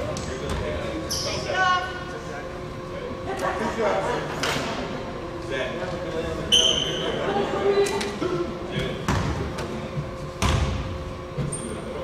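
Young players shout to each other across an echoing gym.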